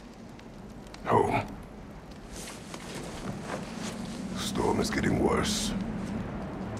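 A man speaks in a deep, low voice, slowly and gruffly.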